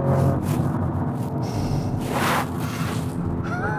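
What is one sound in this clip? A car engine hums as the car drives along a road.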